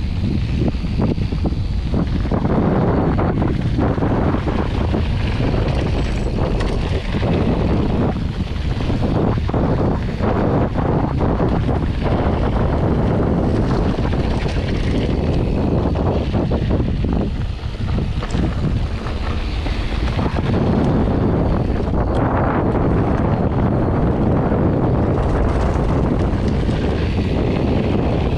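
Bicycle tyres crunch and rattle over a gravel track.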